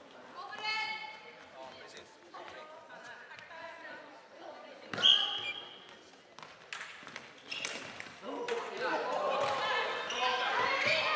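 Young women shout to each other in a large echoing hall.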